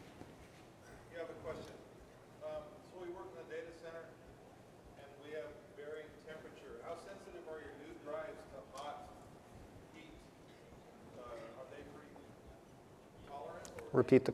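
A second man speaks more quietly and farther from the microphone.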